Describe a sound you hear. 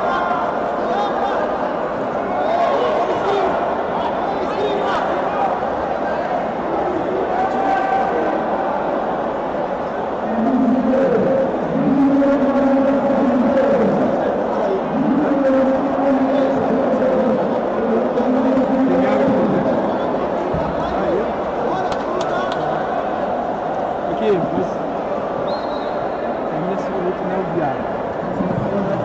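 A crowd murmurs and calls out throughout a large echoing arena.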